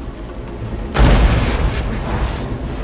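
A sudden blast of energy bursts with a loud whoosh.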